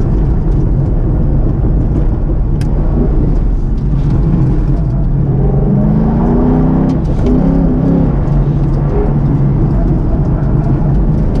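A car engine hums and revs up and down while driving.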